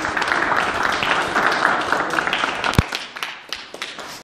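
A man's footsteps tap on a hard floor in a large echoing hall.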